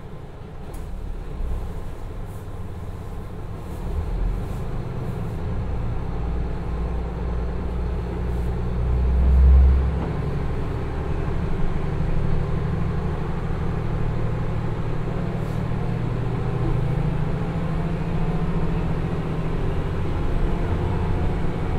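A diesel train engine rumbles steadily and grows louder as the train pulls away.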